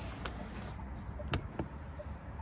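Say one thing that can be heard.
A hand taps on a hard plastic door panel.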